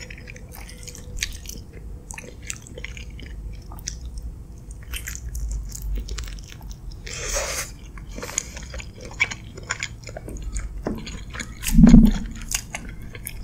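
Wooden utensils scrape and tap against a glass dish.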